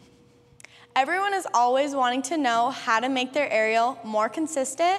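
A young woman talks to the listener with animation, close to the microphone.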